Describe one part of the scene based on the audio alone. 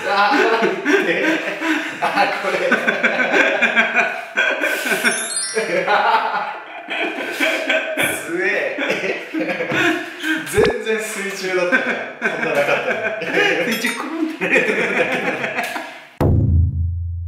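Two young men laugh loudly together.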